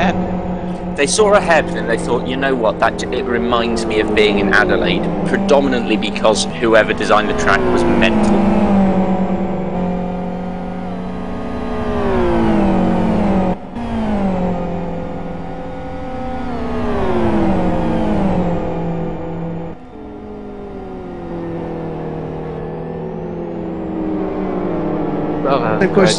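Racing car engines roar loudly, rising and dropping in pitch as the cars shift gears and brake.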